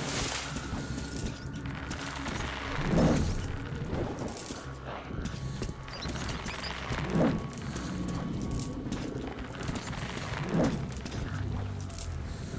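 Footsteps squelch slowly through wet mud.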